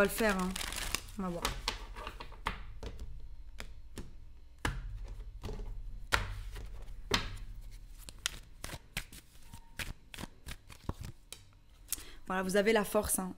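Playing cards shuffle and tap against each other.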